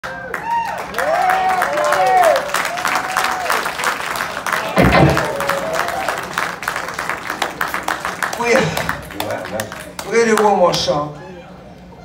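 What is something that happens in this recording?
An audience applauds and cheers loudly in a large hall.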